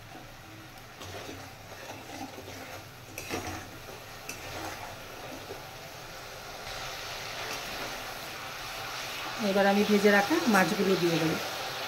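A metal spatula scrapes and stirs in a pan.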